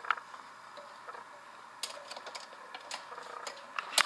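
A knob on a record player clicks as it is turned.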